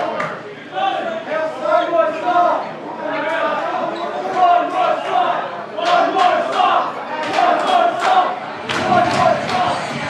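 A live band plays loudly in an echoing hall.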